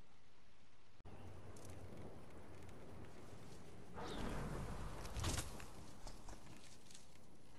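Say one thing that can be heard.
Wind rushes past during a glide through the air.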